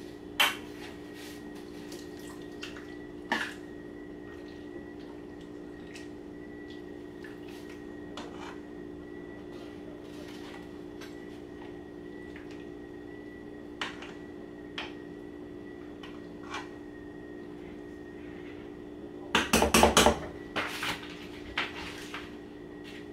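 A spoon scrapes and clinks against a pot while food is stirred.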